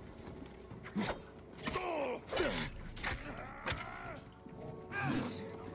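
Swords clash and slash in quick strikes.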